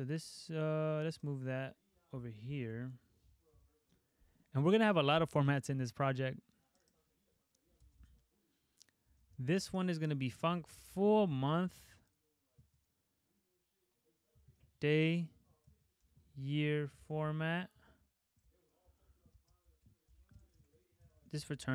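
A young man talks calmly and close to a microphone, with pauses.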